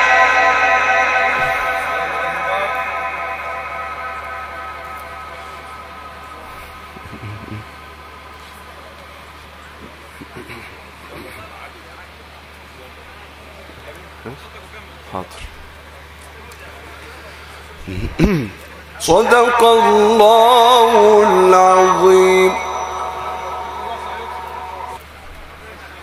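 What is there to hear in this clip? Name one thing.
A man chants in a long, melodic voice through a loudspeaker, echoing outdoors.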